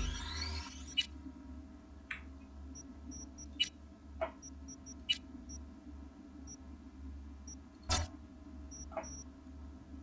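Short electronic clicks sound as menu options are selected.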